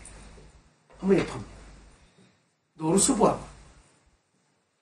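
An older man speaks calmly in short phrases, close by.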